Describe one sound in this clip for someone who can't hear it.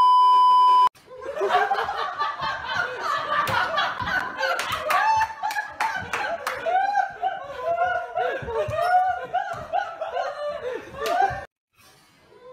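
A young man laughs loudly and repeatedly.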